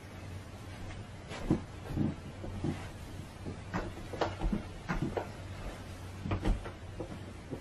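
Clothing rustles and thumps close to a microphone as a man sits down.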